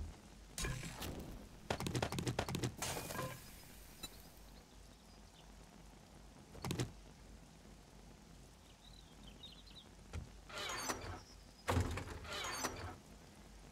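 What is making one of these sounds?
Quick rustling and clicking bursts sound as items are picked up and moved.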